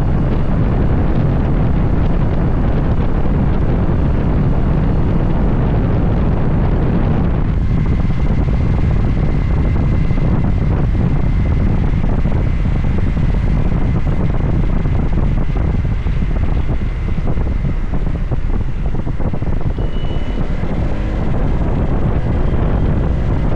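A scooter engine hums steadily as it slows down.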